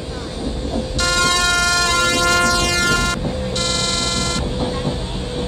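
A train horn blows loudly twice.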